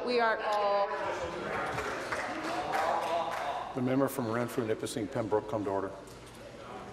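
Many men and women talk and call out over one another in a large hall.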